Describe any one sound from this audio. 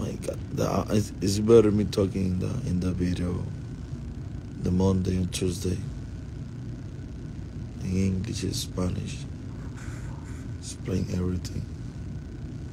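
A man speaks calmly and close to a phone microphone, in short bursts with pauses.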